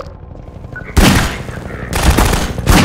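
Single pistol shots ring out.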